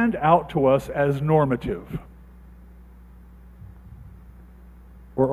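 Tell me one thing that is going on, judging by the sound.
A man speaks with animation into a microphone in a large echoing room.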